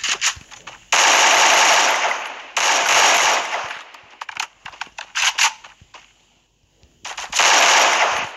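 Rifle gunfire rattles in loud rapid bursts.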